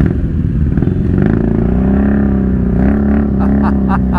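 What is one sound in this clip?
A motorcycle engine revs up and down nearby.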